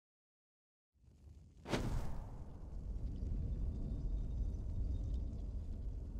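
Torch flames crackle and roar softly.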